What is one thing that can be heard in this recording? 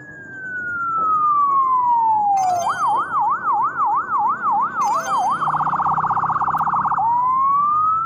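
An ambulance siren wails, switching between a slow rising-and-falling wail and a fast yelp.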